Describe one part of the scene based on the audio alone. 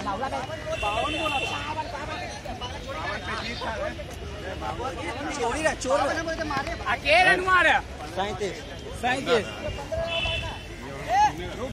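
Several young men shout and chatter outdoors in the distance.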